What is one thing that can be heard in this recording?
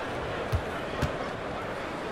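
A basketball bounces a couple of times on a hardwood floor.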